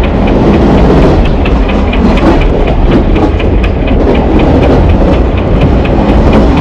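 A train rumbles along steadily, its wheels clattering in a quick, even rhythm over the rail joints.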